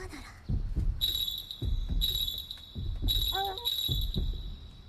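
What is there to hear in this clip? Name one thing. A small bell jingles.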